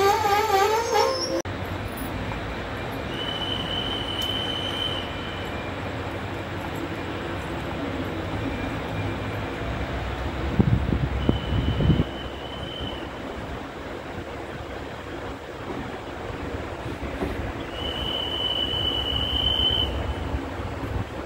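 A passenger train carriage rumbles on rails as it pulls out of a station.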